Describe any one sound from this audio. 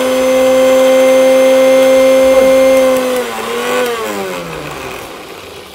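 An electric mixer whirs loudly and steadily, then winds down.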